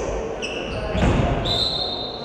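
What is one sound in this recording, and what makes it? A ball thumps on the floor.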